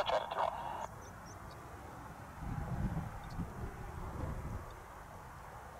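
Jet planes roar far overhead.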